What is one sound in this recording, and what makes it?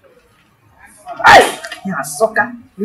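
A middle-aged woman speaks with animation, close by.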